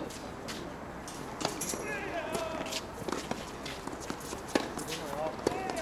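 A tennis ball bounces on a hard court before a serve.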